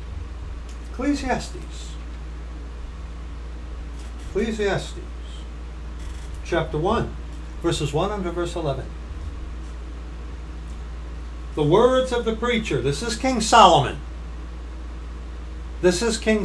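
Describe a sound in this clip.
A middle-aged man speaks calmly in short bursts, close to a microphone.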